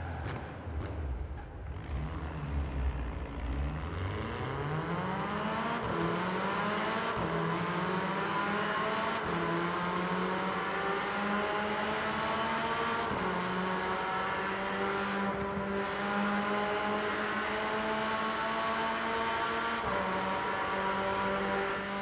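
A car engine revs up hard, rising in pitch through each gear and dropping at every gear change.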